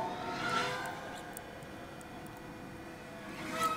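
A thin tool scrapes and clicks against a plastic shell.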